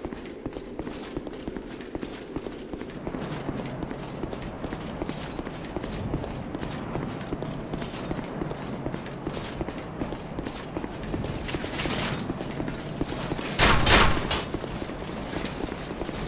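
Footsteps thud on stone at a steady walking pace.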